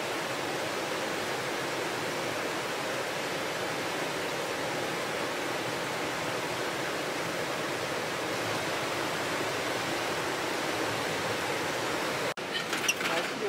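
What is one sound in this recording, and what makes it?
A swollen river rushes loudly over a weir.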